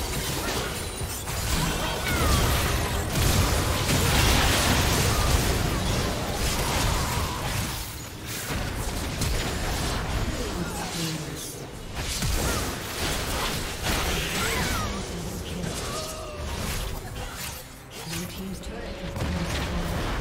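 Game spells blast and clash in a busy battle.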